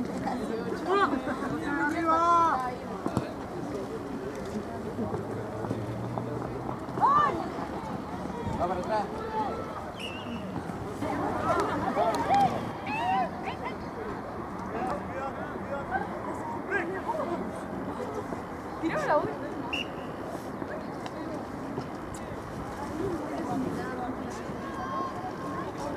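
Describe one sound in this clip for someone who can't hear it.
A crowd of spectators shouts and cheers nearby outdoors.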